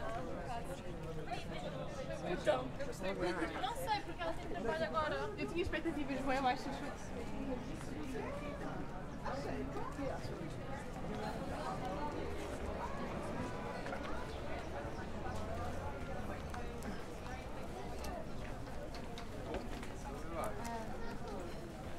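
Footsteps shuffle on a cobbled street.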